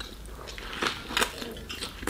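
A man bites into soft bread.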